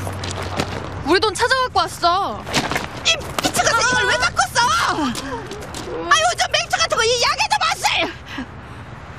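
An elderly woman speaks loudly and excitedly nearby.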